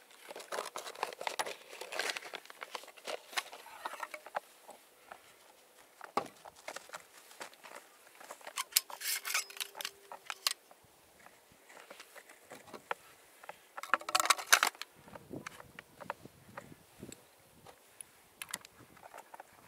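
A shotgun action clicks and clacks.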